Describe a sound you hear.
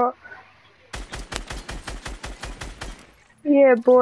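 A gun fires in a rapid burst of shots.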